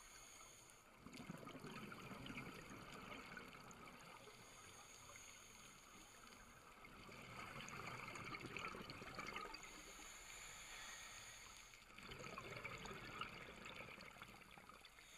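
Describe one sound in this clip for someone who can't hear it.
Air bubbles from a diver's breathing gear gurgle and rumble underwater in bursts.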